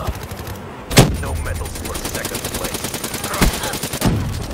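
A rapid-fire gun shoots a quick burst.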